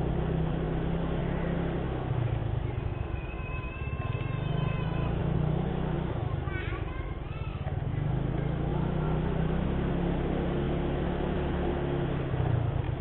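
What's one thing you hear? A motorcycle engine hums steadily close by as it rides along.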